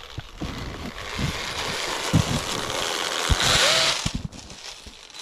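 A sled slides and hisses over snow.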